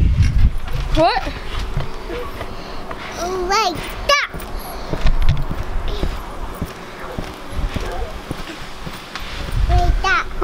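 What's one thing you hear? A small child squeals in a high voice.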